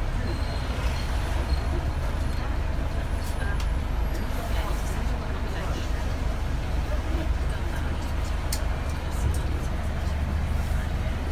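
Traffic passes by on a city street.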